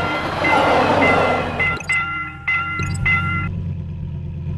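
A railway crossing bell rings rapidly.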